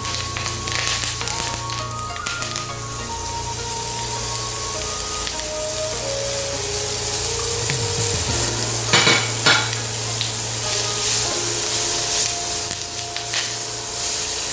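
Onions sizzle in hot oil in a pan.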